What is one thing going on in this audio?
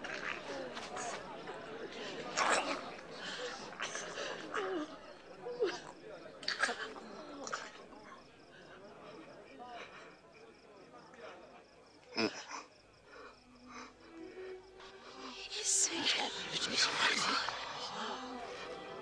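A crowd of people murmurs and cries out nearby.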